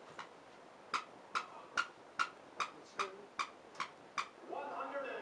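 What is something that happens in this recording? A rubber dog toy squeaks repeatedly.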